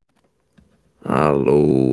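A middle-aged man speaks close to a microphone.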